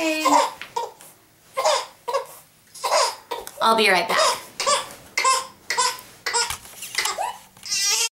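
A woman speaks close by in short, lively bursts.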